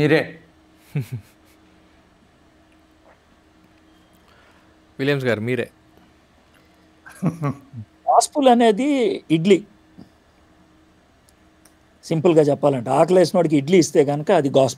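Middle-aged men talk and laugh over an online call.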